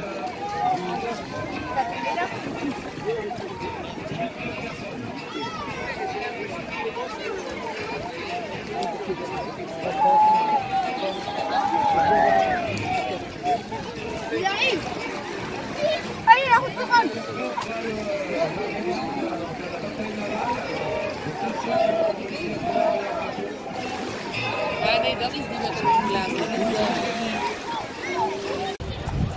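A crowd of people chatter and call out nearby, outdoors.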